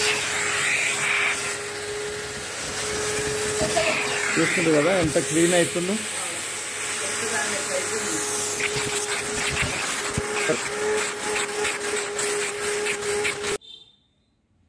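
A vacuum cleaner whirs loudly as its nozzle brushes over upholstery.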